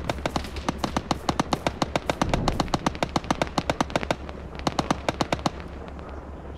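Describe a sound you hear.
A machine gun fires rapid bursts in the distance.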